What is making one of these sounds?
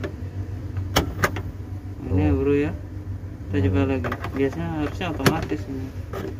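A car lighter clicks sharply in its socket.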